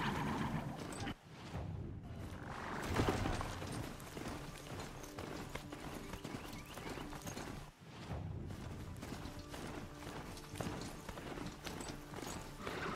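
A mechanical mount's hooves thud rhythmically on dry ground.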